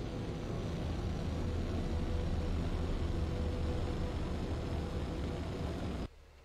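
A spacecraft engine roars with a deep, steady rumble.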